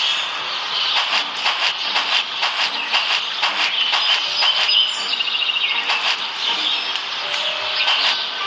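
Footsteps tap in a quick, even rhythm.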